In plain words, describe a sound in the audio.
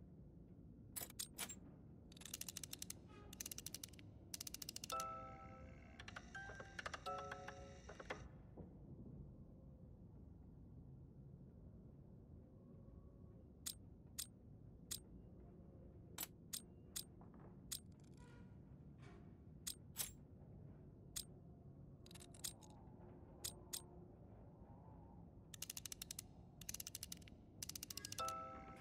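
Metal cylinders click and rattle as they turn.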